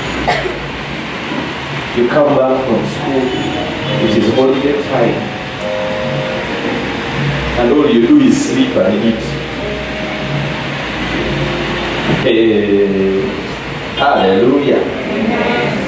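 A man speaks with animation through a microphone, heard over loudspeakers in an echoing hall.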